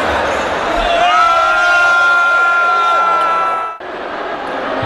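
A group of men cheers and chants loudly together.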